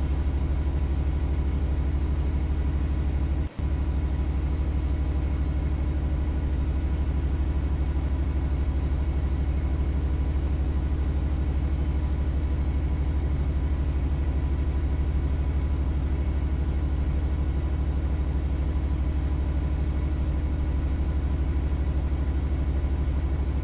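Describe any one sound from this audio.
A diesel locomotive engine drones steadily and loudly.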